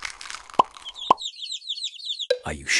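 Hens cluck.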